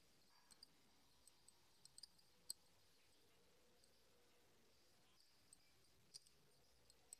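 Small metal bangles click and tap softly as hands wrap thread around them.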